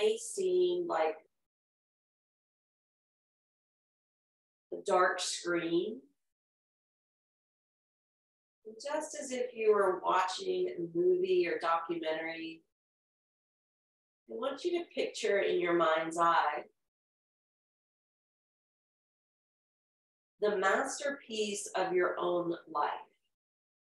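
A woman speaks calmly and slowly into a close microphone, with long pauses.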